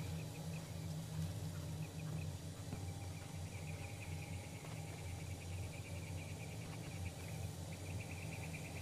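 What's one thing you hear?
Tall grass rustles as someone walks through it.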